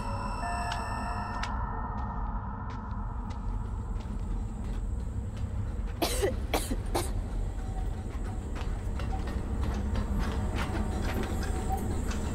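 Footsteps walk across a hard floor.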